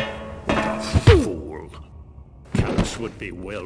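A heavy blow thuds against a body.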